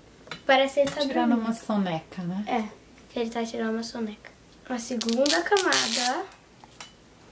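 A young girl talks with animation, close by.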